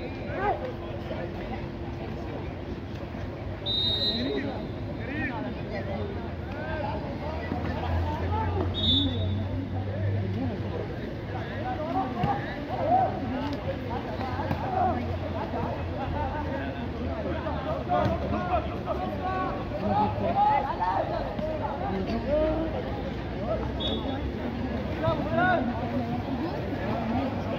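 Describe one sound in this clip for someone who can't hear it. Men shout and call out from around an outdoor pool.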